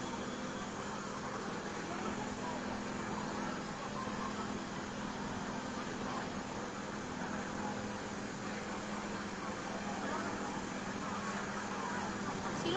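A truck engine idles with a low steady hum.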